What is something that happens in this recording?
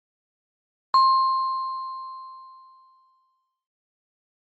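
A single electronic chime rings once and slowly fades.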